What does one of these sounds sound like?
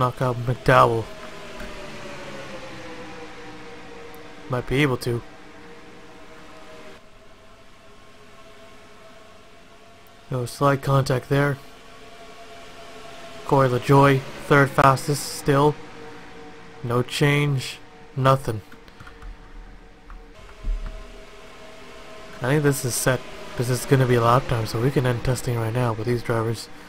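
Several race car engines drone steadily as the cars speed around a track.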